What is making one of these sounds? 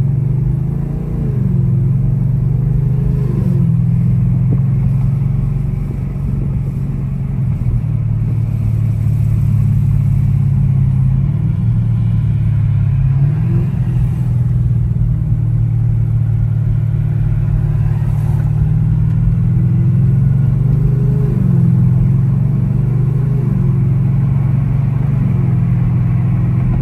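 A car engine rumbles deeply and steadily from inside the cabin.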